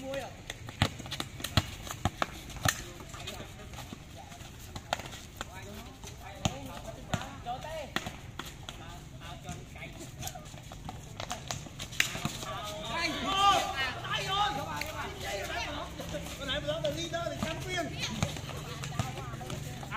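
Children and teenagers shout and call out to each other outdoors.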